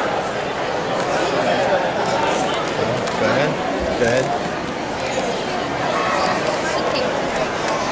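A marker pen squeaks across glossy paper.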